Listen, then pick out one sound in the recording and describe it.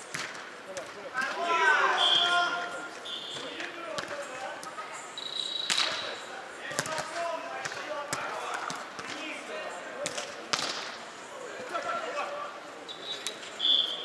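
Men call out to each other during play in a large echoing hall.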